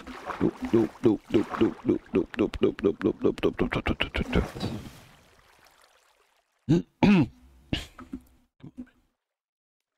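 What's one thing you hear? Water splashes as a swimmer moves through it.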